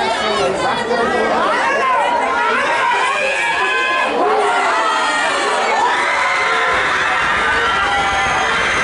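A crowd of spectators shouts and cheers loudly outdoors.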